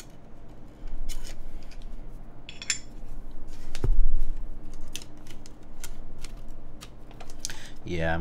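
Keys clack as a keyboard is typed on.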